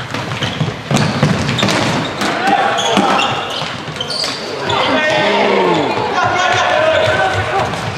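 Shoes squeak sharply on a hard indoor floor in an echoing hall.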